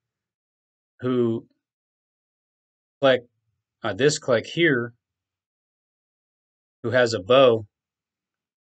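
A man speaks calmly in short bursts into a close microphone.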